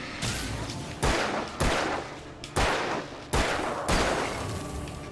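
Gunshots crack loudly several times in quick succession.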